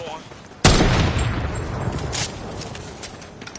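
A sniper rifle fires a loud shot that echoes away.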